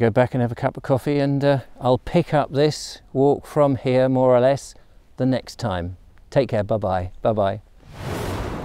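A middle-aged man talks calmly and close by, outdoors.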